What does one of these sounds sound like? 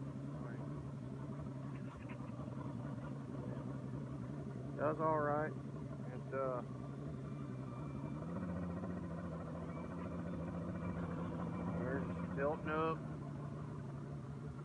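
An outboard motor hums steadily and shifts up in pitch partway through.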